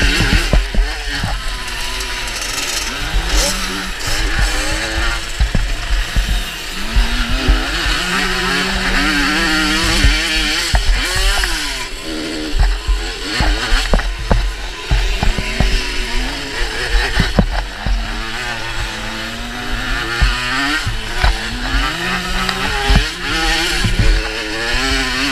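Other motorbikes buzz ahead on the track.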